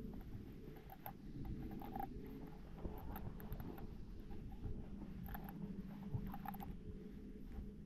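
Water gurgles and bubbles as a plastic bottle fills up in a lake.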